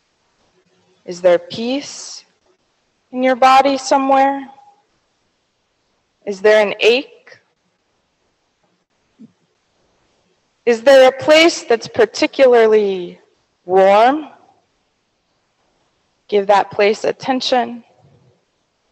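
A woman speaks into a microphone in calm phrases with pauses, in a large echoing hall.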